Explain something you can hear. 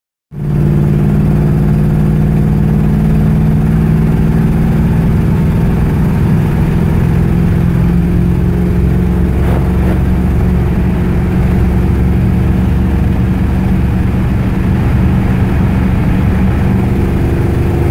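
An old American car's engine drones, heard from inside while cruising.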